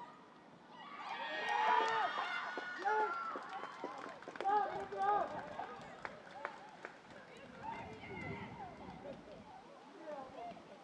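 Young women cheer and shout excitedly at a distance outdoors.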